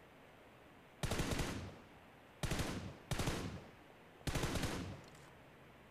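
Rifle shots ring out in short bursts.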